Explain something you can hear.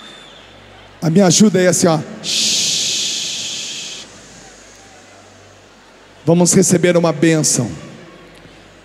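A man sings loudly into a microphone, heard through loudspeakers in a large hall.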